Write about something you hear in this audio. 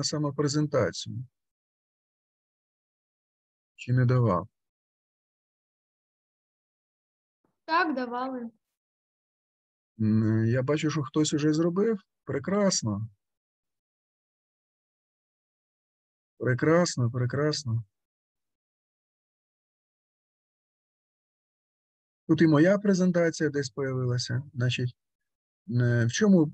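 A middle-aged man speaks calmly in short phrases, close to a microphone.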